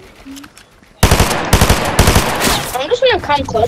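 A gun fires a quick burst of sharp shots.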